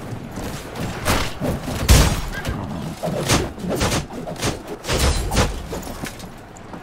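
Swords clash and strike armour in quick, heavy blows.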